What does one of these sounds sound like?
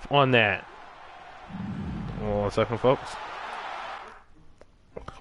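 A crowd cheers and roars.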